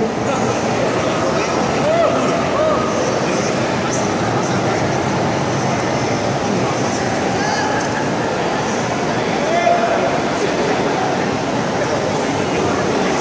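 A live band plays a song through loudspeakers in a large echoing hall.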